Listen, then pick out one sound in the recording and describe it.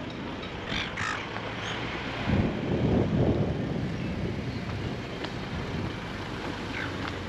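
Wind blows and buffets outdoors.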